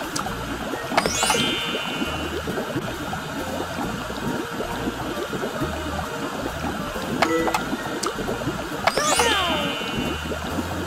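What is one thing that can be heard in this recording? A bright rising chime rings out.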